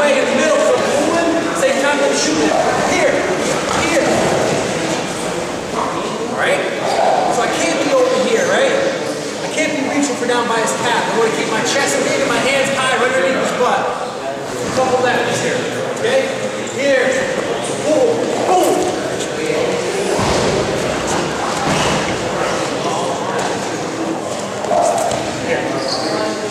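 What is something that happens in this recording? Wrestlers' feet shuffle and thump on a mat.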